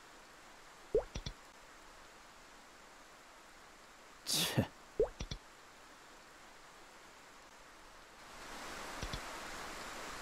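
Short soft chimes sound now and then.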